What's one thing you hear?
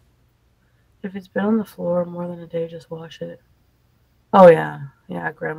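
A woman talks casually into a close microphone.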